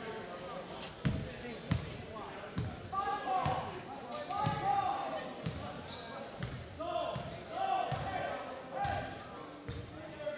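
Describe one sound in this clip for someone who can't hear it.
A basketball bounces steadily on a hardwood floor in a large echoing gym.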